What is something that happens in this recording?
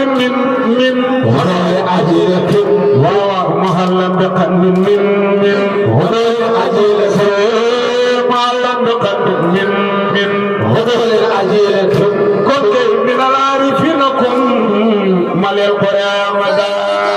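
Several men chant together in unison through a loudspeaker.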